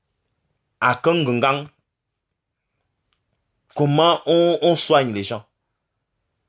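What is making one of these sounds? A man speaks close to the microphone in short bursts.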